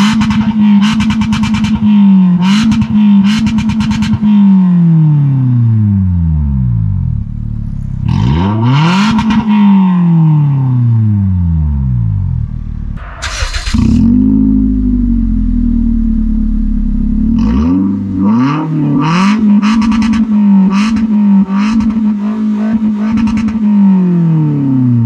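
A car engine revs up and down loudly through its exhaust, close by.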